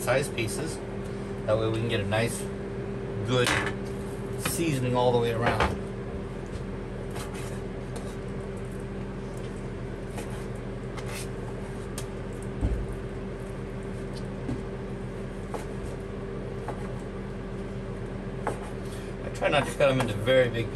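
A knife taps on a cutting board.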